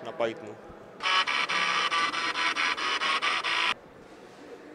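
Floppy drive motors buzz out a pitched tune.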